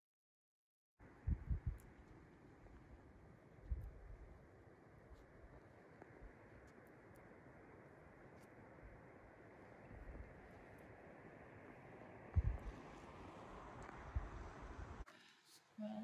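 Wind rushes across an open hillside.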